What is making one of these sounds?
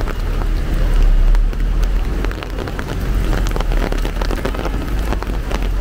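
Rain patters and drips steadily on an umbrella.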